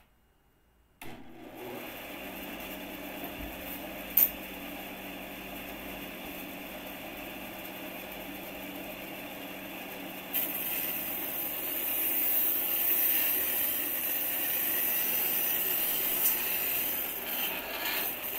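A machine runs with a steady whirring hum.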